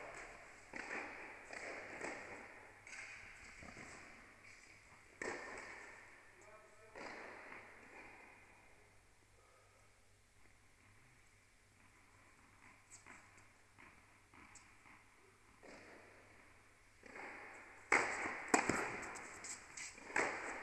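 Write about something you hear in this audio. Tennis balls are struck with rackets, each hit a sharp pop echoing in a large indoor hall.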